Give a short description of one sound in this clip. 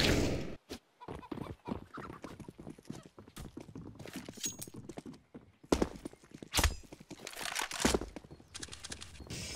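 Footsteps run on stone.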